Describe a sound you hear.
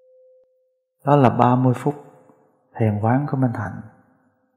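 A middle-aged man speaks slowly and calmly into a microphone.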